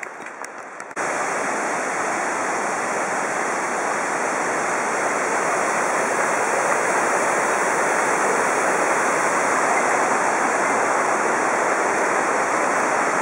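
A stream rushes over rocks nearby.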